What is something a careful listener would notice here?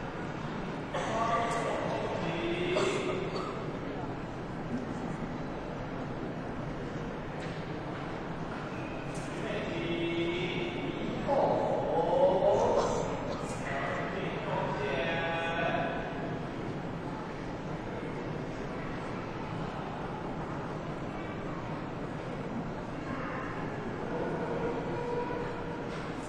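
A crowd of men and women talks in low voices in a large hall.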